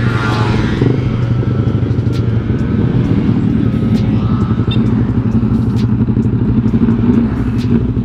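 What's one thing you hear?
A motorcycle engine hums steadily close by as it rides.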